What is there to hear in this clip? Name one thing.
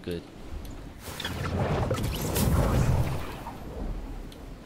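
Wind rushes loudly during a glide.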